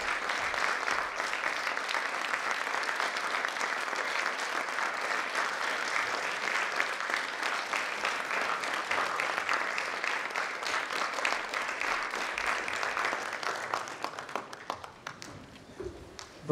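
An audience applauds loudly in a large hall, then dies down.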